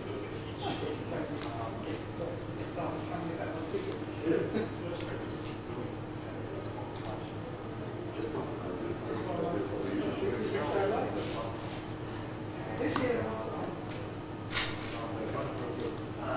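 An elderly man speaks calmly at a distance in an echoing hall.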